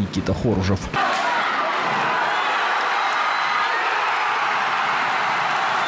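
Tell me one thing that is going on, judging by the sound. A crowd cheers and roars in a large echoing arena.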